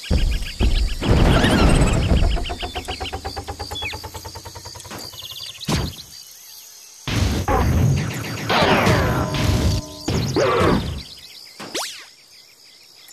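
Loud electronic game music and sound effects play in bursts.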